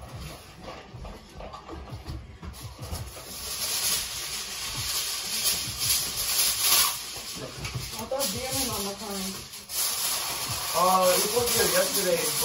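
A foil pan crinkles and rustles as a man handles it.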